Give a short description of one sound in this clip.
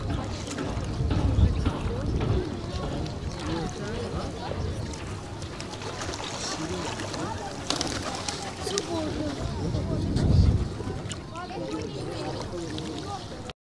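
Small waves lap softly at the water's edge.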